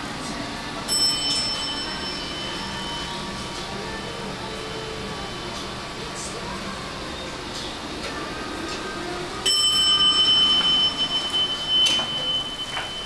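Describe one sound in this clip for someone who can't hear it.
An elevator chime rings with a steady tone.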